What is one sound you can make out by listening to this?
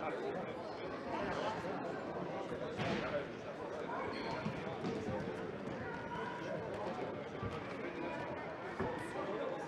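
A ball thuds against the floor and walls.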